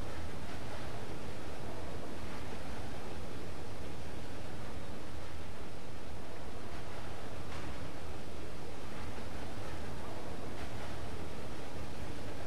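Footsteps clank on a metal ladder.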